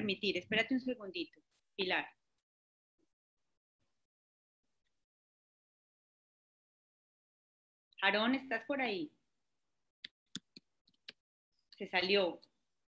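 A woman speaks calmly through an online call, pausing between phrases.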